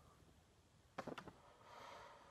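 Computer keys click a few times close by.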